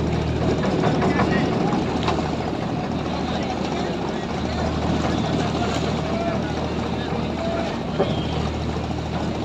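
River water splashes and laps against the boat.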